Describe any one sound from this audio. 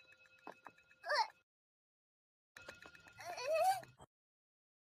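A young girl exclaims in a puzzled, questioning voice.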